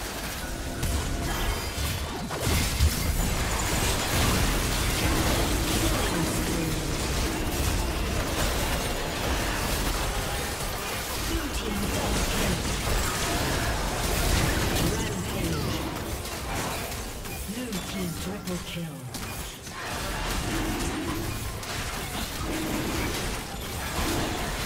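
Magic blasts, clashes and booms of a fantasy battle crackle in quick bursts.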